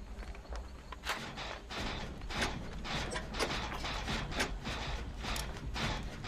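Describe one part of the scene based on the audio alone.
Metal parts rattle and clank as a machine is worked on by hand.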